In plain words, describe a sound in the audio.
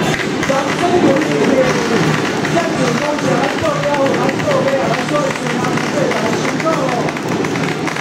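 Performers shout calls as they march in a procession.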